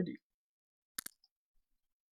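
A button clicks once.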